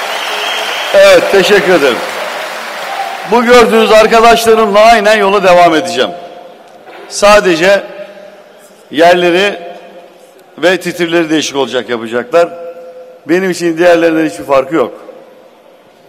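A man speaks loudly and forcefully into a microphone, heard through loudspeakers in a large echoing hall.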